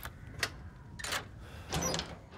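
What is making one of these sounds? A metal lock clicks open.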